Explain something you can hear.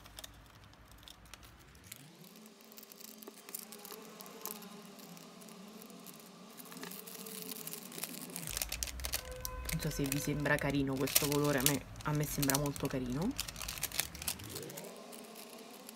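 Scissors snip through thin plastic film.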